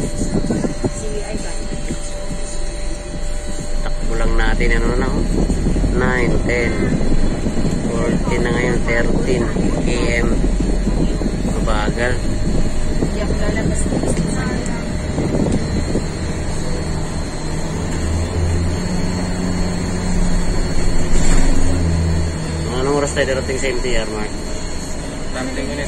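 A car engine hums steadily with the low rumble of tyres on the road.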